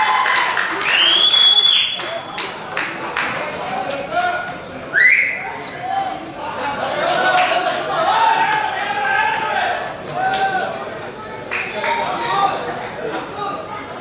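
Young men shout and cheer outdoors.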